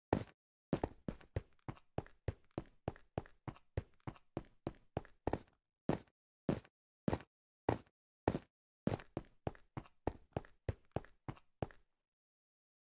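Footsteps tread on stone at a walking pace.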